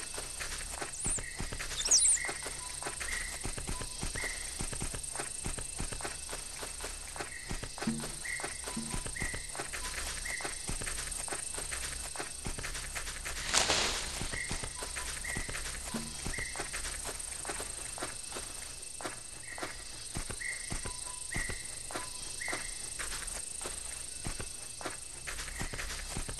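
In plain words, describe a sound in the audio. A large creature's footsteps pad steadily on dry ground.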